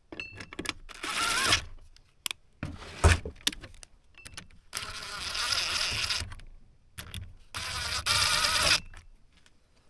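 A cordless drill whirs in short bursts close by.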